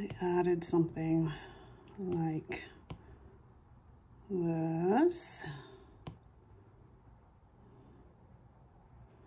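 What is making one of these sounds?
A stylus taps and slides on a glass tablet.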